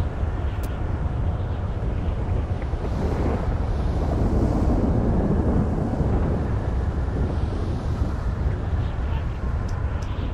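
An aircraft engine roars steadily.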